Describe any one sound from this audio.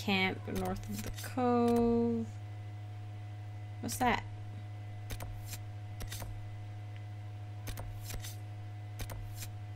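Soft interface clicks tick now and then.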